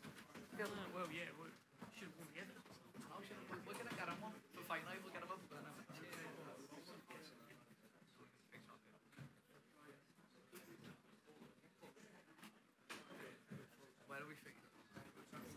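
Several men and women chat nearby.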